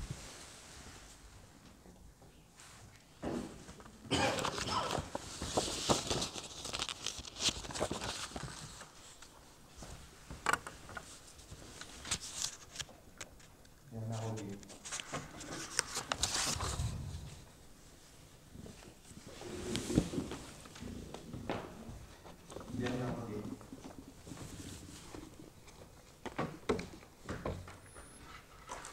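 Paper rustles and shuffles close by.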